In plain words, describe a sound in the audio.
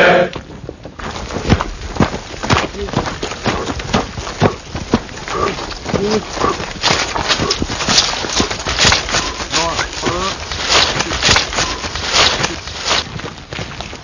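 Boots thud and scuff quickly on dry ground.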